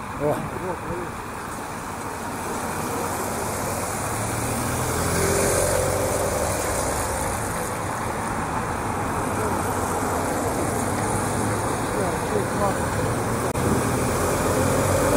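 Cars and motorcycles rush past on a wide road.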